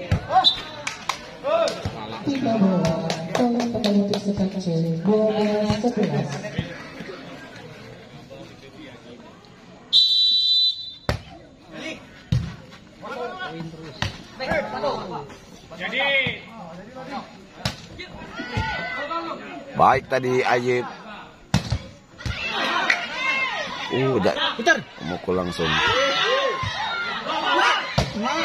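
A volleyball is struck with sharp slaps.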